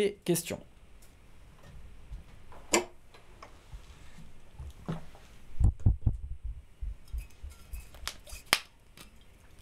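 Keyboard keys click and clack.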